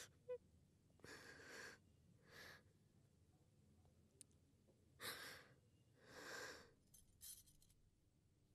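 A young woman speaks anxiously in short bursts nearby.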